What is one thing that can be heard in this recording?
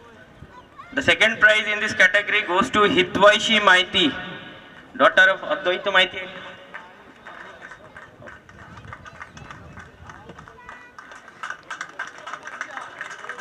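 A man announces loudly through a loudspeaker outdoors.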